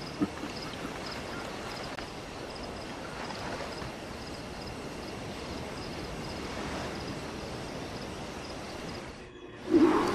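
Gentle waves wash onto a beach.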